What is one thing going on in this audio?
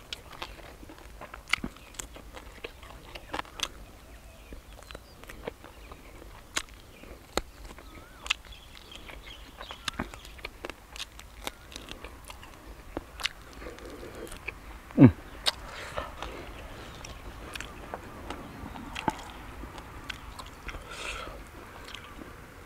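A man chews and crunches the small bones of grilled rat close to the microphone.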